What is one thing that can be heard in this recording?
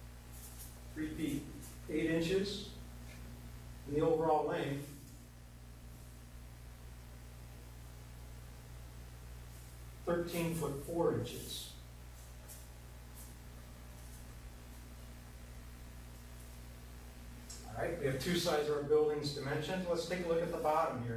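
A man speaks calmly and explains, close to a microphone.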